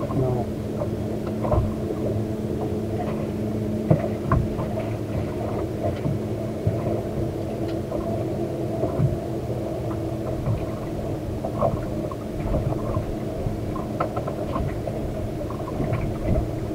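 Water slaps against a boat's hull.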